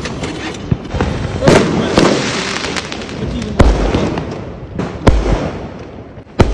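Fireworks bang and crackle loudly outdoors, one after another.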